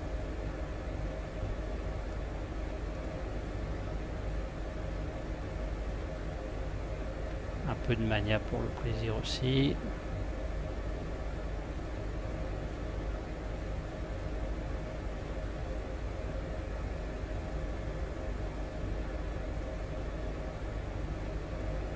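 A helicopter engine and rotor hum steadily from inside the cabin.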